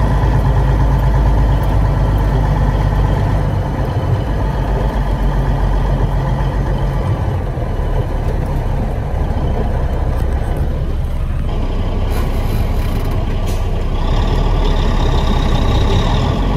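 An old car engine rumbles loudly and steadily as the car drives slowly along a dirt track.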